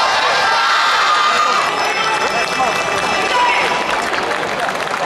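A large group of dancers shout and chant together outdoors.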